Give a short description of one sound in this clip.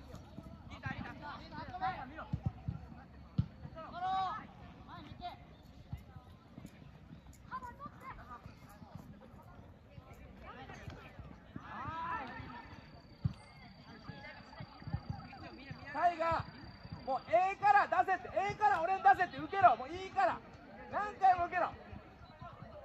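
Players shout to each other across an open outdoor football pitch.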